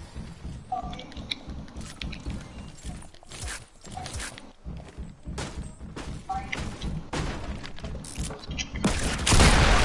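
Footsteps thump quickly across a wooden floor.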